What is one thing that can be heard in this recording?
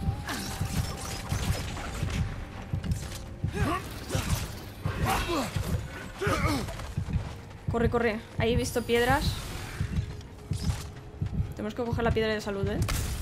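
Heavy blows and thuds land in a fight.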